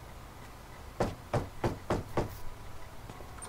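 A man knocks on a wooden door.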